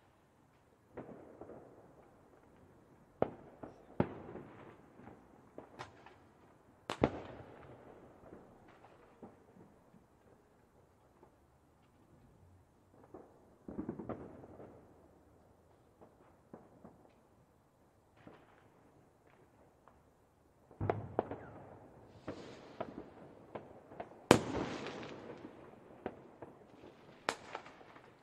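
Fireworks boom and crackle in loud bursts, with rumbling echoes.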